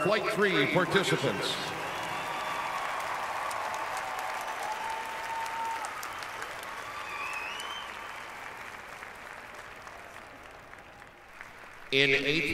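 A large crowd cheers and applauds in an open stadium.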